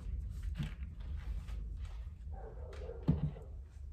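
A gloved hand wipes a glass tabletop with a soft rubbing sound.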